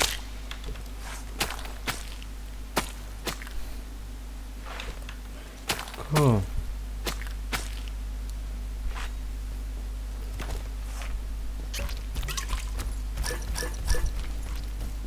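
Blades clash and strike in quick, sharp blows.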